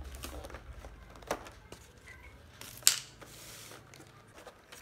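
A plastic lid clicks and crackles as it is opened.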